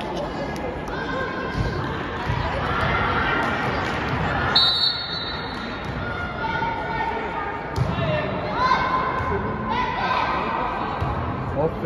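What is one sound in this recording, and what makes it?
Sneakers squeak on a wooden court in an echoing hall.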